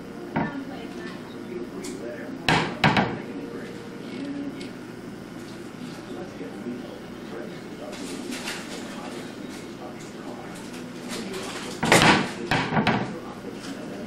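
Wooden cabinet doors bang and thump.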